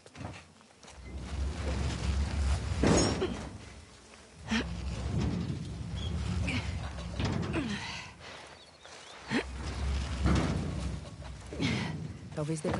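A heavy metal bin scrapes loudly across the ground as it is pushed.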